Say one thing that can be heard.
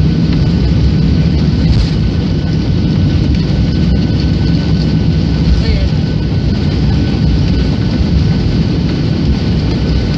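A jet engine roars steadily, heard from inside a cabin.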